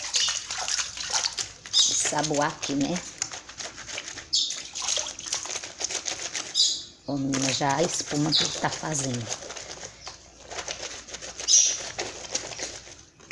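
Wet cloth is scrubbed with a bar of soap, with quick rubbing and swishing sounds.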